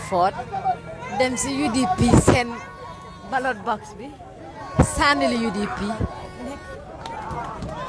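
Nearby people shout and whistle.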